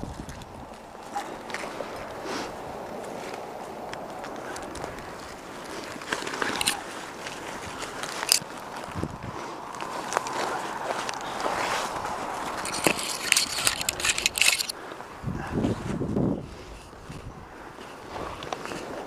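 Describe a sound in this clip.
Pine branches and needles rustle and scrape close by.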